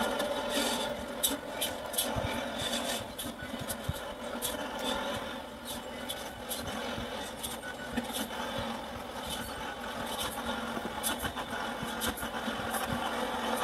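A heavy truck engine rumbles as the truck drives slowly.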